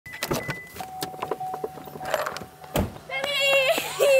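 A car door clicks and opens.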